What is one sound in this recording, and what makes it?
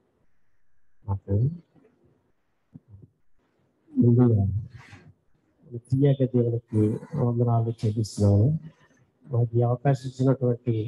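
A man speaks into a microphone, heard through a loudspeaker in an echoing room.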